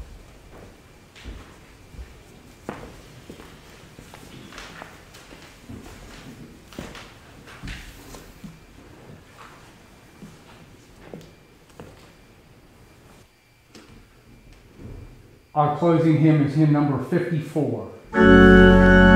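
An elderly man speaks calmly in an echoing room.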